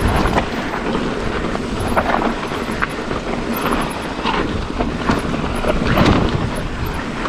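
Mountain bike tyres crunch and roll over dry dirt and gravel.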